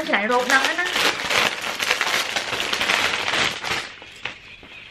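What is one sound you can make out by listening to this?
A fabric bag rustles as it is handled.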